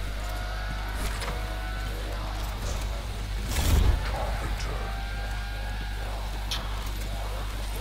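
Explosions burst and rumble nearby.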